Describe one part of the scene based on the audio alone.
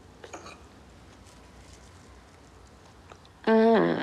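A fork scrapes on a plate.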